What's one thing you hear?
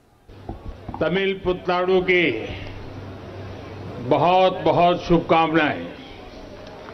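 An elderly man speaks slowly and forcefully into a microphone in a large echoing hall.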